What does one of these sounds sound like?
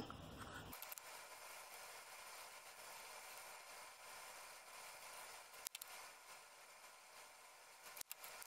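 A marker tip scratches softly across paper.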